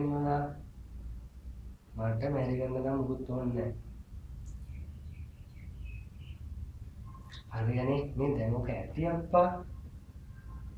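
A young man talks quietly on a phone, close by, in short phrases with pauses.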